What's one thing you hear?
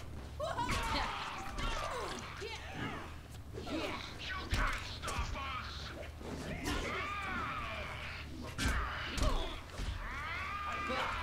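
Blades swish and slash rapidly through the air.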